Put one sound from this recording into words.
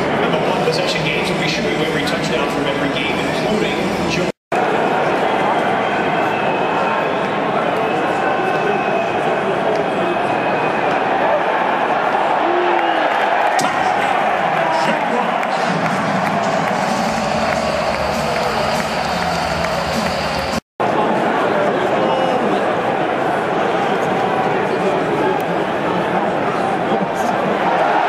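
A large stadium crowd roars and cheers steadily outdoors.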